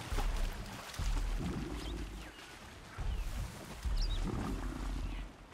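Leafy plants rustle as someone pushes through them.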